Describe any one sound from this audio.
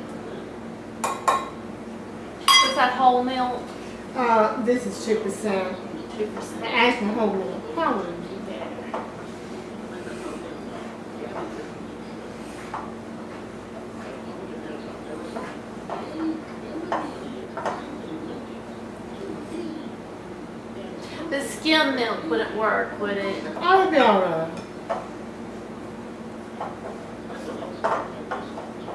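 Utensils clink against a bowl.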